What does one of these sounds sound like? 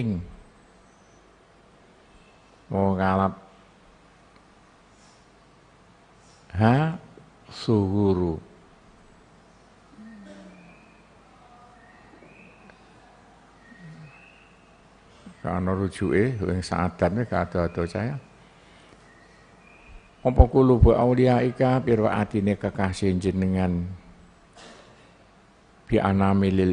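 An elderly man chants a recitation in a drawn-out voice through a microphone, with pauses in between.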